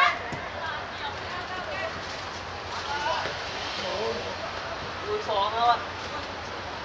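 Young players shout to each other across an outdoor field.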